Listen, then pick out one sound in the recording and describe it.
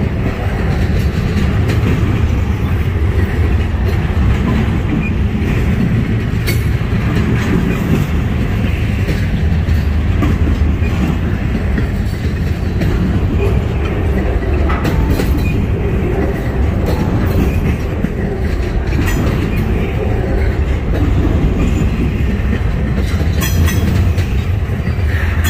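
A freight train rumbles past close by, with a steady low roar.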